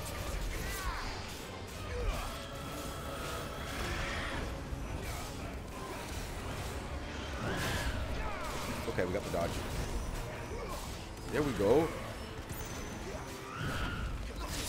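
Game blasts and magic effects whoosh and crackle.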